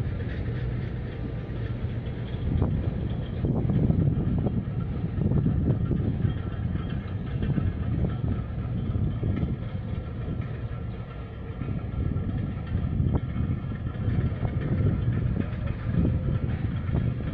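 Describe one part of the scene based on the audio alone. Wind blows across the microphone outdoors, rumbling in gusts.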